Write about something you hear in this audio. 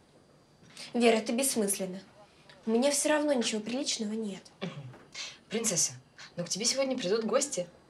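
A young woman speaks in a firm voice, close by.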